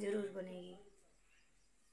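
A young woman speaks briefly, close up.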